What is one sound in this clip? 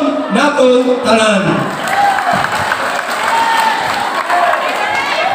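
A large crowd chatters and cheers in an echoing open hall.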